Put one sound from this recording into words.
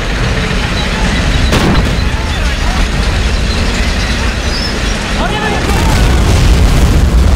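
Tank engines rumble and tracks clank steadily.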